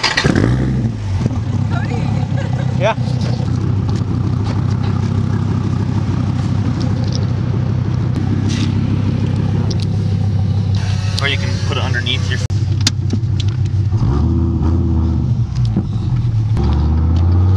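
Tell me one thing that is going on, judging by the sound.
A sports car engine idles with a deep, rumbling burble.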